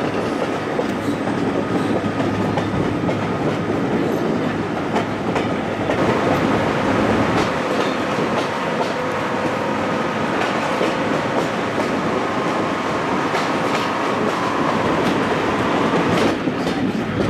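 Train carriages rumble and clatter steadily along the track.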